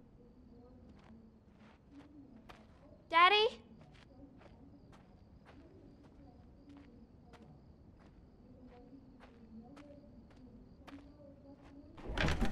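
Soft footsteps pad slowly across a wooden floor.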